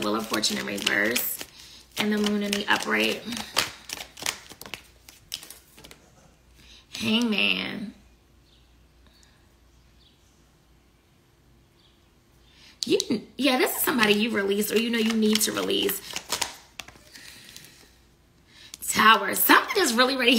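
Paper banknotes rustle and flick between fingers.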